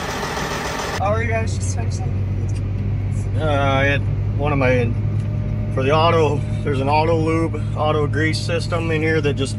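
An engine hums low and steady in the background.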